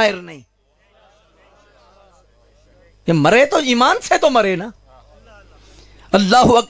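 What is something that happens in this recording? A man preaches passionately into a microphone, his voice loud and echoing through loudspeakers.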